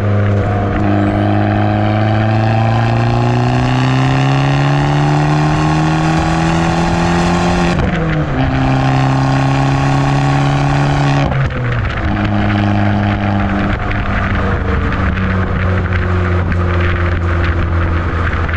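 A car engine roars loudly through the exhaust, rising in pitch as it accelerates and dropping at each gear change.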